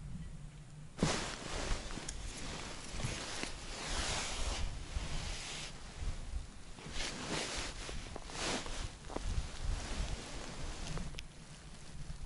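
Heavy clothing rustles as a person shifts and crouches.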